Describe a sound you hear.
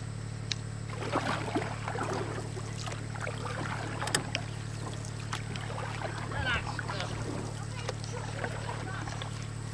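Shallow water sloshes and splashes around wading legs.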